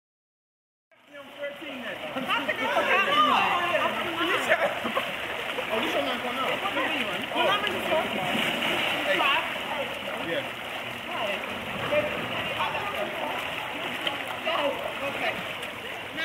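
Water splashes as people wade about.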